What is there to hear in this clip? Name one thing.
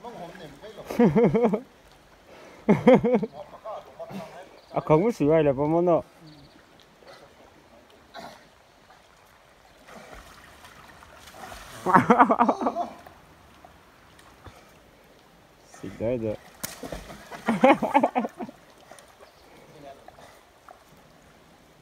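Water splashes softly around a swimmer.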